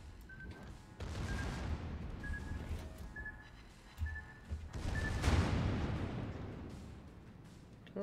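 Heavy naval guns boom and rumble.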